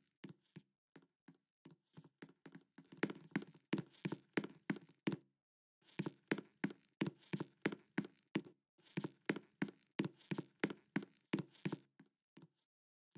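Footsteps tap quickly and evenly.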